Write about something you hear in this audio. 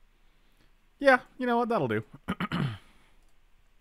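A second man talks into a close microphone.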